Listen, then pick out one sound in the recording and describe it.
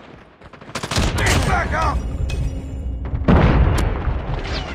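A shotgun fires loud blasts at close range.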